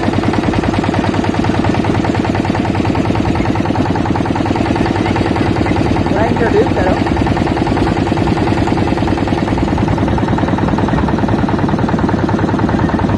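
A boat engine drones steadily throughout.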